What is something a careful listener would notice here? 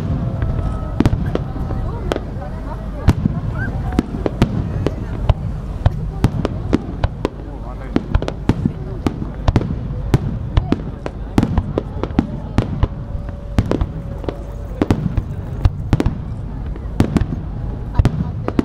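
Fireworks crackle and pop after bursting.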